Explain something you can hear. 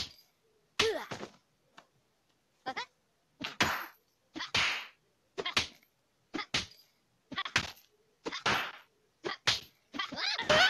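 A punching bag thumps under repeated punches.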